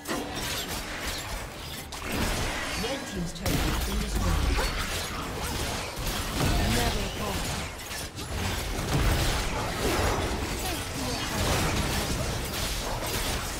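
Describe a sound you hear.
Spell blasts and impacts crackle and boom in quick bursts.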